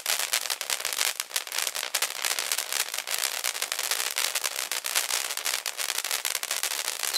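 Fireworks crackle and pop rapidly.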